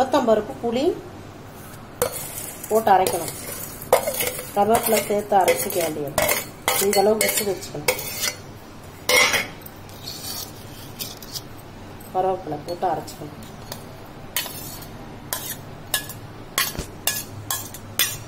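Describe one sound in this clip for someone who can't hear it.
A steel pan knocks and scrapes against a steel mixer jar.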